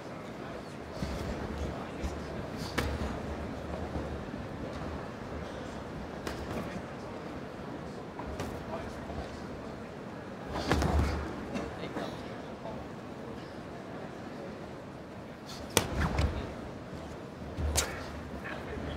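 Boxing gloves thud against a body in sharp punches.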